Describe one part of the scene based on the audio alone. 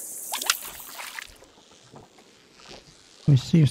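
A fishing reel whirs and clicks as the line winds in.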